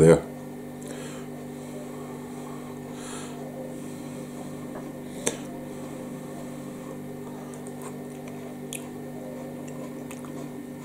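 A man chews food with his mouth close by.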